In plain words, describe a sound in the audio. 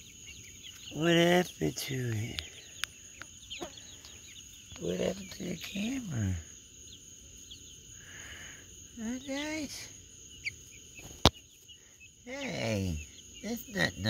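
Young birds give loud, drawn-out crowing calls.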